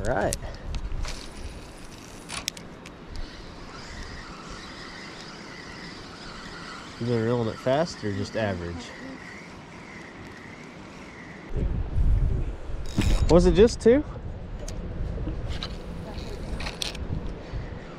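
A fishing line whizzes out as a rod is cast.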